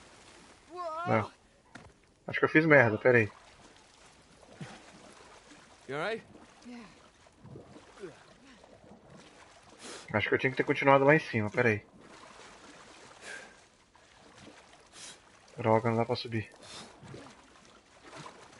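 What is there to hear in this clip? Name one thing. Water sloshes as a swimmer strokes through it.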